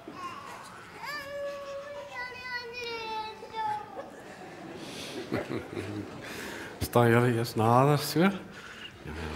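A baby cries out.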